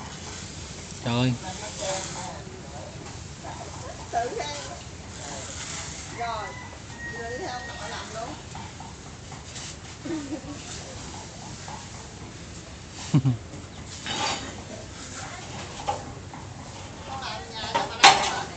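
A small child scrapes a trowel on a concrete floor.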